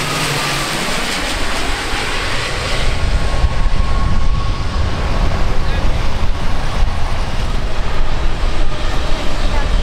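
A propeller plane drones loudly overhead as it comes in low.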